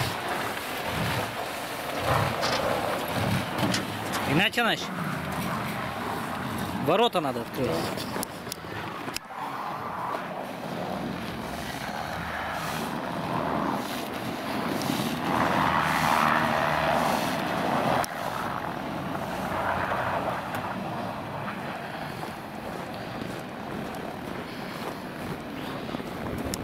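A car engine runs and revs nearby.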